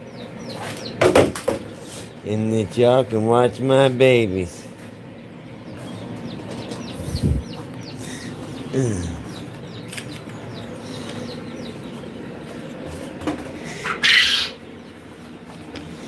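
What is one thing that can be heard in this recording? Chicks chirp with high, short peeps.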